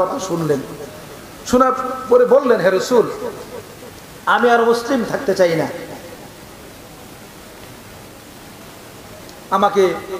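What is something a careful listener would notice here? A man chants in a melodic voice through a microphone, in phrases with pauses between them.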